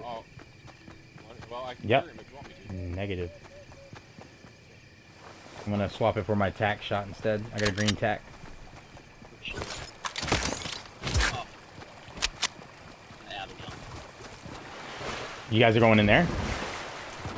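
A young man talks casually into a close microphone.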